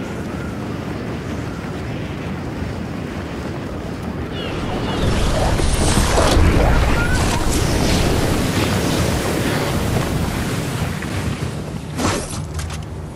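Wind rushes loudly during a fast glide through the air.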